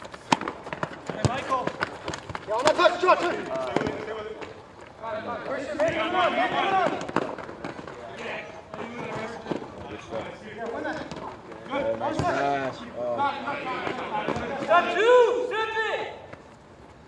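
Children shout and call out outdoors during a ball game.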